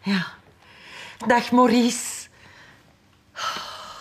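A middle-aged woman talks cheerfully on a phone.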